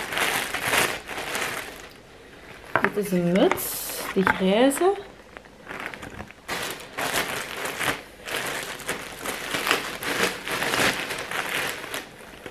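A plastic bag rustles and crinkles close by.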